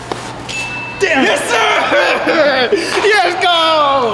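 A young man talks loudly and excitedly close by.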